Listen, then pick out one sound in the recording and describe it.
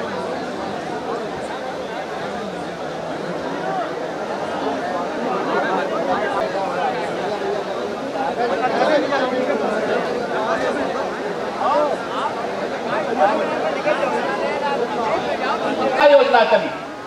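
A large crowd murmurs and chatters.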